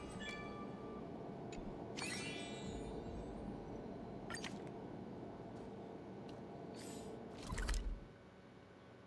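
Short electronic menu chimes and clicks sound.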